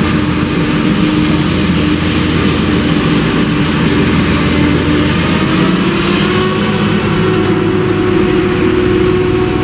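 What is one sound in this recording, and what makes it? A tractor engine drones and hums alongside.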